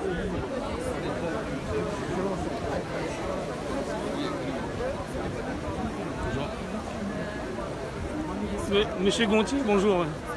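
A man and a woman talk with each other up close.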